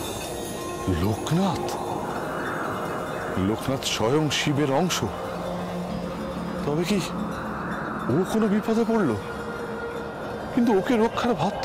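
An elderly man speaks with emotion, close by.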